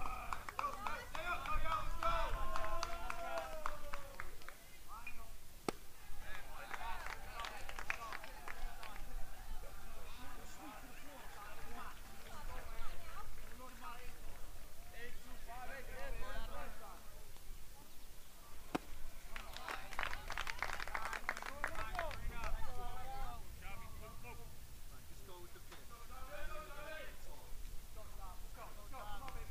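Young men call out and chatter across an open field.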